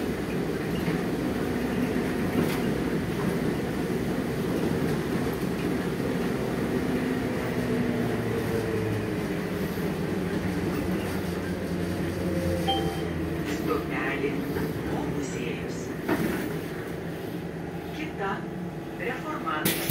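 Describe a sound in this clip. The bus body rattles and clatters over the road.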